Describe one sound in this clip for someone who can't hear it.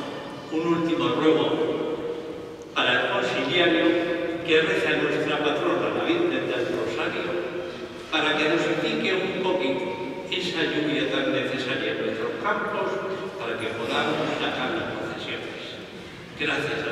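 An elderly man speaks solemnly into a microphone in a large echoing hall.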